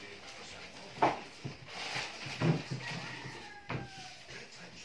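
A plastic chair scrapes and knocks on the floor.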